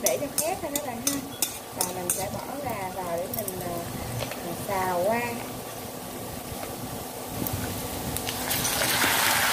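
Hot oil sizzles softly in a pan.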